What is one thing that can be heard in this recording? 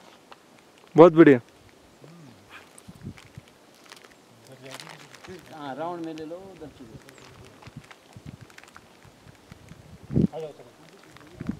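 A man talks nearby outdoors, in short bursts.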